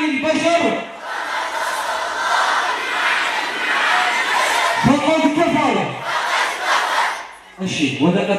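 A large crowd chants together in response.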